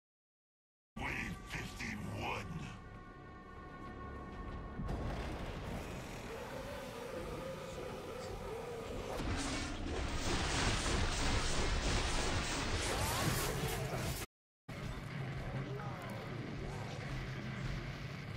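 A blade swishes and slashes repeatedly.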